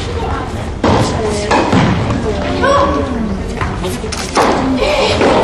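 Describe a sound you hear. A tennis ball is struck sharply by a racket in an echoing indoor hall.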